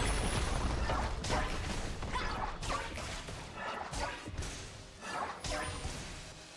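Game spells crackle and zap in quick bursts.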